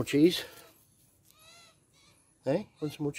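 A magpie warbles softly nearby.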